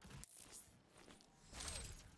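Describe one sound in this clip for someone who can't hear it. A portal hums and whooshes.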